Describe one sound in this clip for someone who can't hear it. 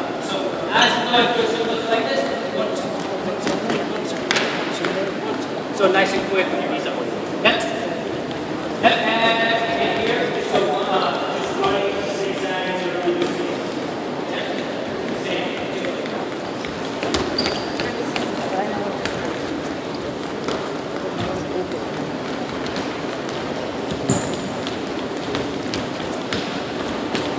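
Sneakers patter quickly on a wooden floor.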